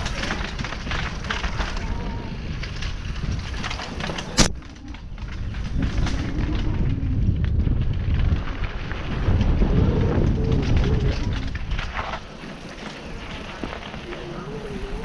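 A motorbike engine revs and drones, rising and falling.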